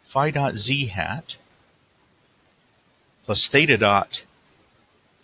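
A man speaks calmly, close to the microphone, in two short phrases.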